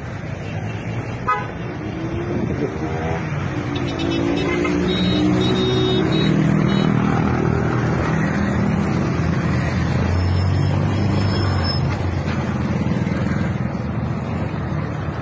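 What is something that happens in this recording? Traffic rumbles past on a road.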